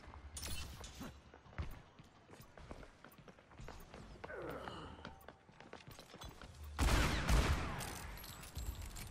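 Footsteps patter steadily on stone.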